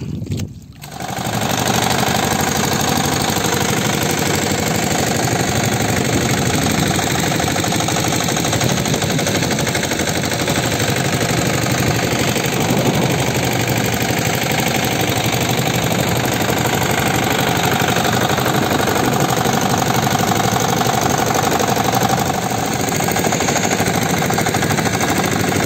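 A boat engine roars loudly and steadily close by.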